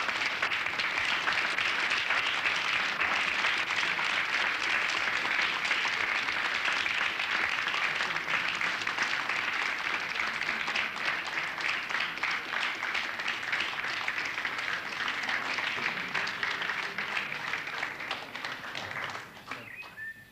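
A crowd applauds loudly and steadily, then fades.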